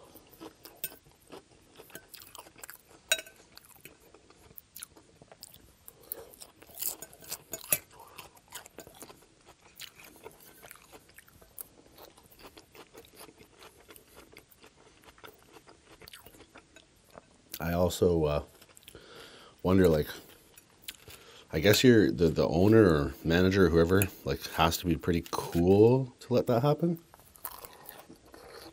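A fork clinks and scrapes against a glass bowl.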